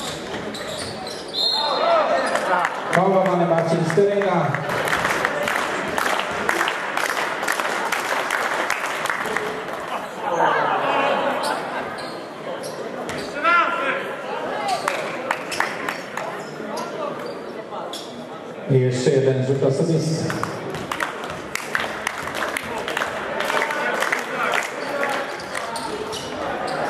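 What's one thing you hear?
A crowd of spectators cheers and shouts in an echoing hall.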